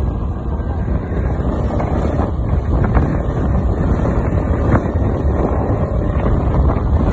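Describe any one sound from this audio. Wind rumbles loudly against a microphone outdoors.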